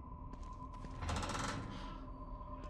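A heavy door swings open.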